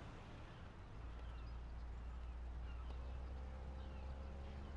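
A car engine rumbles low and the car pulls away.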